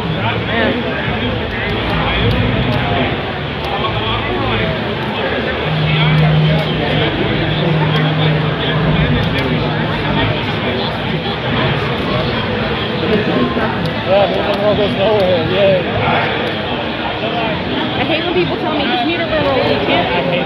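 A crowd of people chatters loudly all around in a busy hall.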